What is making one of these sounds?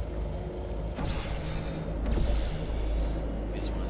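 A device fires with short sharp zaps.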